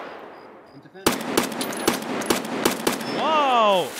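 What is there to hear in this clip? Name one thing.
Gunshots crack in quick bursts, echoing off into the distance.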